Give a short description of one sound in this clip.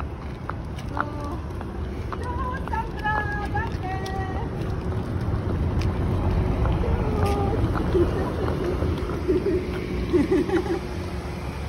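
A car engine rumbles steadily nearby.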